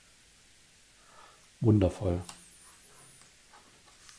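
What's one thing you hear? Trading cards shuffle and tap softly onto a table.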